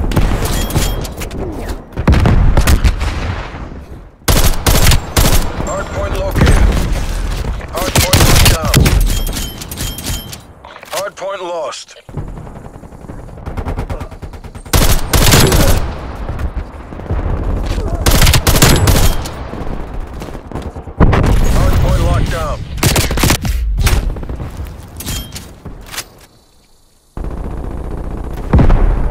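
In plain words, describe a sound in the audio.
An assault rifle fires rapid shots.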